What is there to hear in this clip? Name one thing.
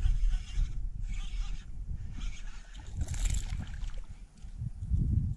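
Water laps gently against a kayak's hull.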